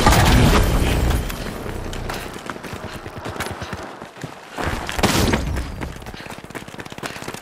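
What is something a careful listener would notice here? Footsteps thud quickly over rough ground.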